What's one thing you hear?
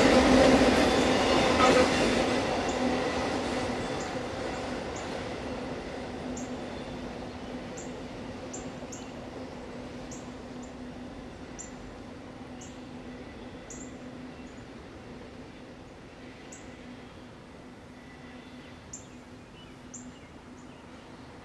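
A train rumbles and clatters past on the tracks, then slowly fades into the distance.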